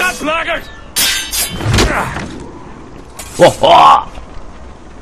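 Swords clash sharply.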